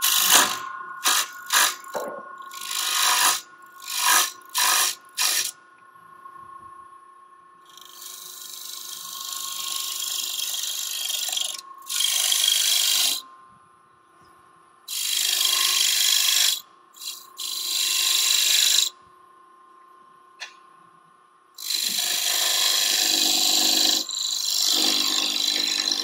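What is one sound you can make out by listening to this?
A lathe hums steadily.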